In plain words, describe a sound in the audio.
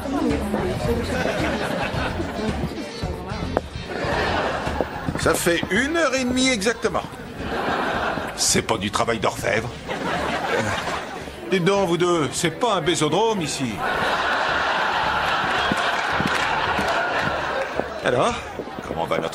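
A crowd of people chatters and laughs at a lively party.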